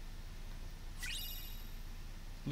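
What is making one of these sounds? A bright magical chime rings out and quickly fades.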